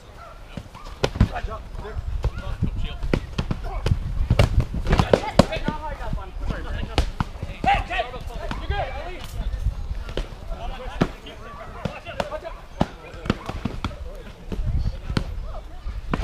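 Wooden practice weapons knock and clack against shields.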